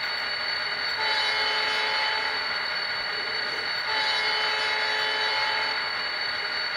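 A model locomotive's horn sounds twice.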